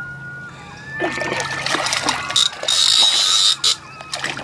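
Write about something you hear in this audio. A fish splashes in the water near a boat.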